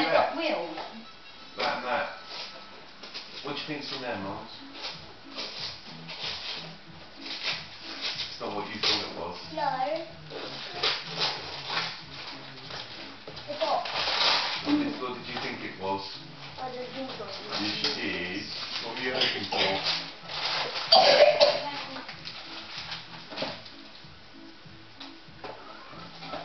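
Children and adults talk and laugh nearby in a lively way.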